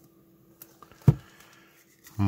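A can knocks down onto a table.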